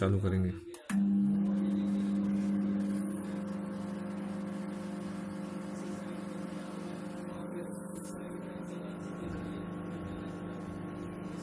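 A microwave oven hums steadily as it runs.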